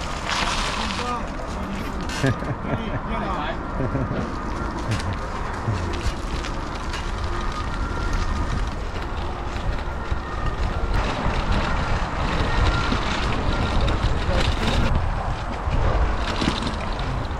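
Bicycle tyres roll over a gravel path.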